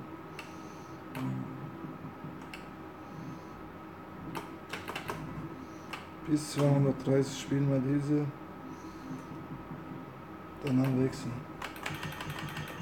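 Slot machine reels click as they spin and stop.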